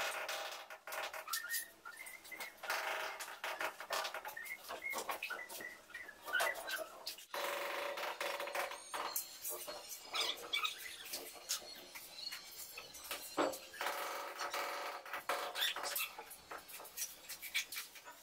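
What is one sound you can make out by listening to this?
A trowel scrapes wet mortar.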